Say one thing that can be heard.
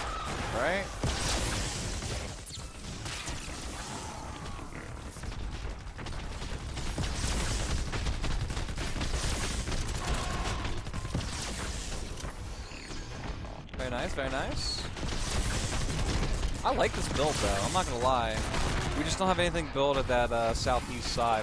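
A young man talks through a microphone.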